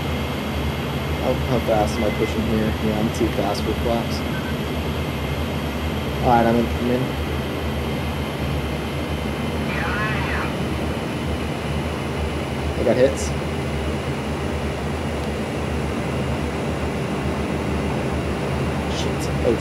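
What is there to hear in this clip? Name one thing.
Wind rushes past the cockpit.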